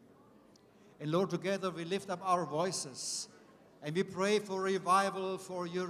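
A man speaks with animation through a microphone over loudspeakers in a large echoing hall.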